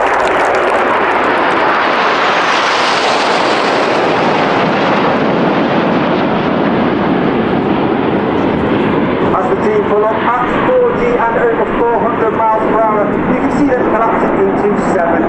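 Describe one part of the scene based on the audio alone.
Jet engines roar loudly overhead.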